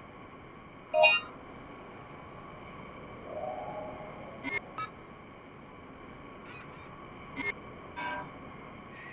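A game menu beeps as options are selected.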